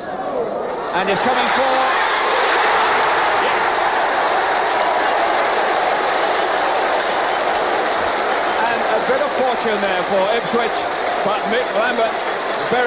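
A large crowd roars and cheers loudly in a stadium.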